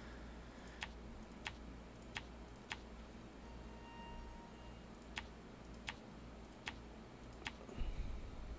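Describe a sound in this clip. Short, sharp interface clicks tick at a steady pace.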